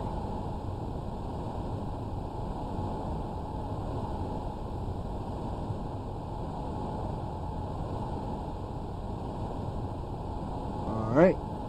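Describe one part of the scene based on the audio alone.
A spacecraft's engines rumble low and steady.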